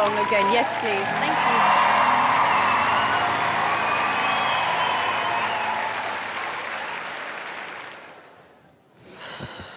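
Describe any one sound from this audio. A large audience applauds and cheers loudly, then fades away.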